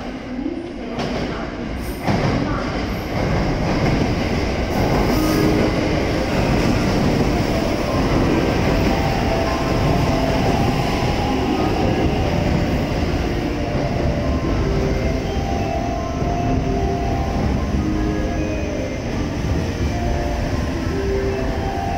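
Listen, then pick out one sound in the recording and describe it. A train pulls in and rushes past close by with a loud, steady rumble.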